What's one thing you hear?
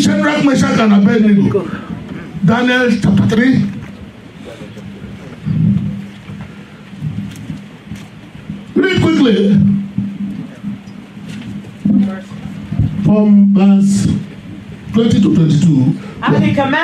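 A middle-aged man preaches with passion through a microphone, in bursts with pauses.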